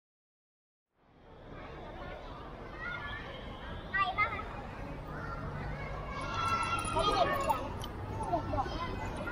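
Children chatter and shout outdoors.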